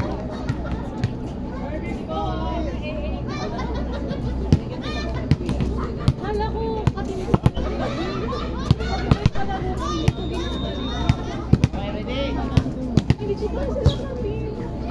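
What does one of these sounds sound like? A volleyball thumps off players' hands and arms.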